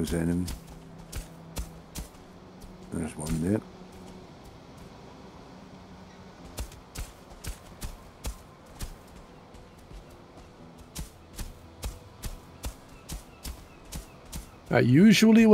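A hoe thuds into loose earth again and again.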